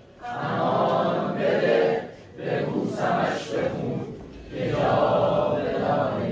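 A crowd of men chants loudly together in an echoing hall.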